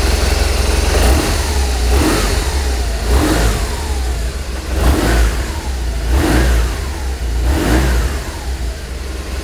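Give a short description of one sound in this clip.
A motorcycle engine revs up several times in quick bursts.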